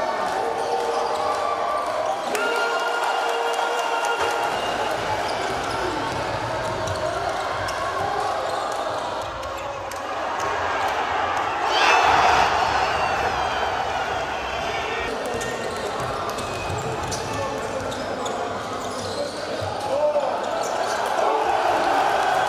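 Sneakers squeak on a wooden court.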